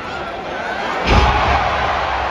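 A body slams onto the wrestling ring mat with a heavy thud.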